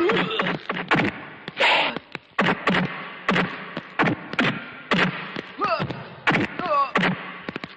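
Punches land with sharp, dull thuds.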